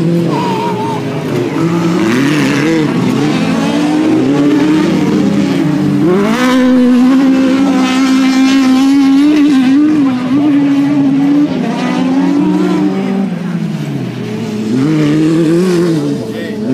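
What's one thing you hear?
Rally car engines roar loudly, revving up and down.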